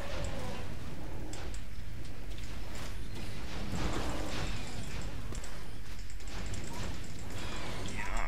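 Fire magic roars and whooshes in bursts.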